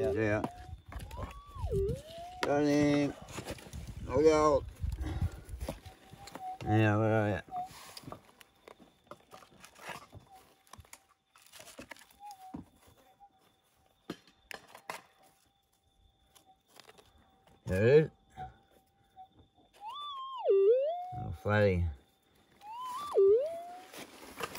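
A metal detector beeps with rising and falling tones.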